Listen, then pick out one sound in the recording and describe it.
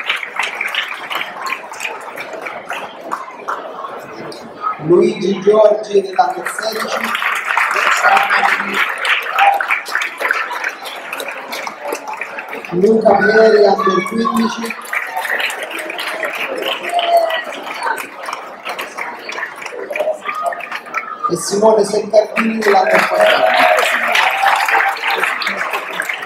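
A large crowd claps and cheers in an echoing hall.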